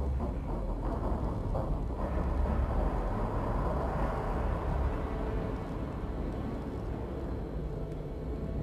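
A spacecraft engine rumbles steadily.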